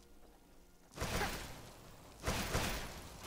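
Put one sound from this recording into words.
A magic spell blasts with a loud rushing whoosh.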